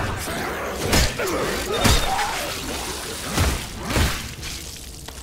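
Heavy blows thud and crunch.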